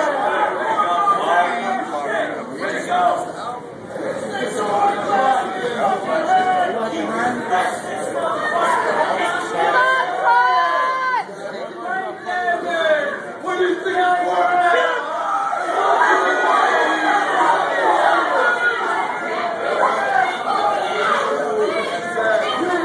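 A crowd of people shouts and chants loudly in an echoing hall.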